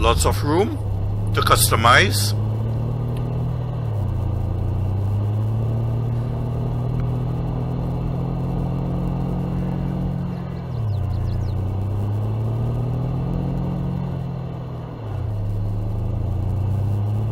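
A pickup truck engine drones steadily, dropping briefly as gears shift.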